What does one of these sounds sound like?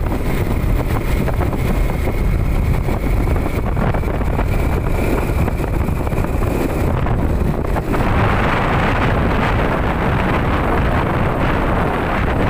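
Wind buffets loudly against a moving motorcycle rider.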